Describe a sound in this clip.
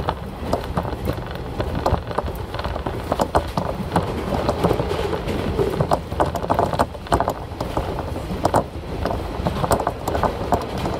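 A diesel railcar rumbles along the track, heard from inside.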